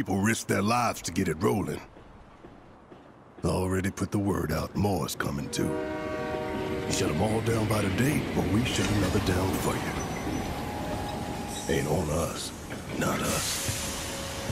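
A man speaks in a deep, gruff voice, low and close.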